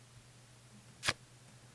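A single short click sounds as a playing card is picked up.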